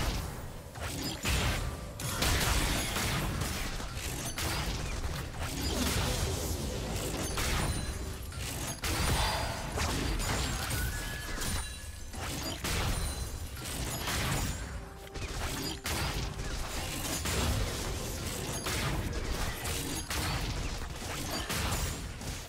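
Game weapons clash with sharp hits.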